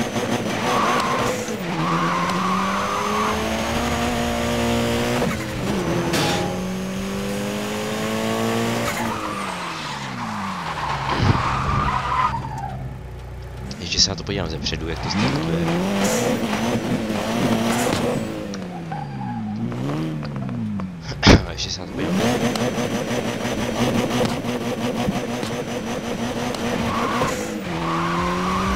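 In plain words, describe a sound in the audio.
A car engine revs up and down through gear changes.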